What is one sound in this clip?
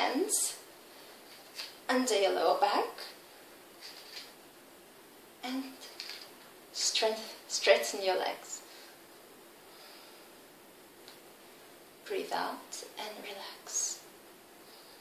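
A young woman speaks calmly in short bursts, close by.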